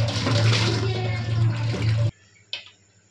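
Water pours from a pot and splashes into a metal sink.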